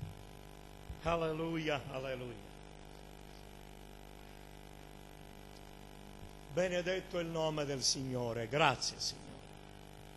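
A middle-aged man speaks with feeling into a microphone, in short bursts with long pauses.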